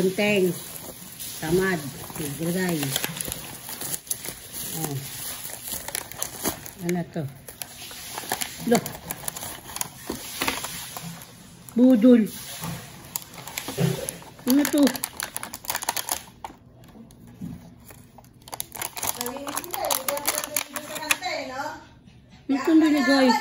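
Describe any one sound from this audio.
A plastic bag crinkles and rustles up close.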